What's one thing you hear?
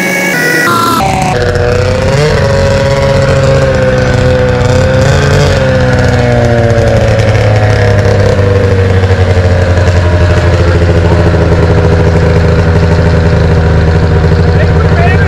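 A snowmobile engine idles and revs nearby.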